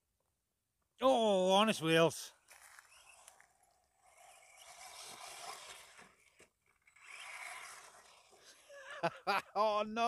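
A small electric motor whines and revs as a toy car races along.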